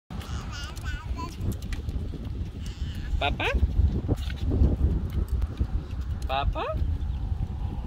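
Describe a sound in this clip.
A baby girl babbles and squeals close by.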